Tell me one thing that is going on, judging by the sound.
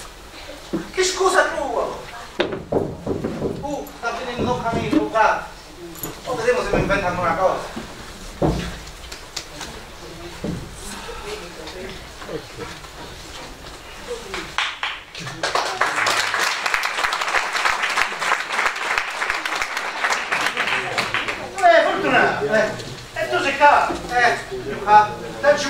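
A man speaks loudly and theatrically.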